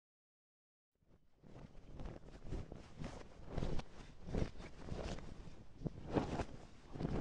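Flags flap and snap in the wind.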